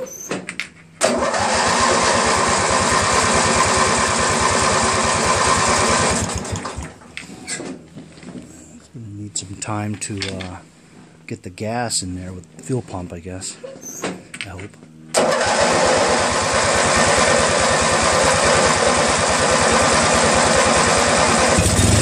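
A small lawn mower engine runs with a loud, steady rattling roar, stopping and starting again.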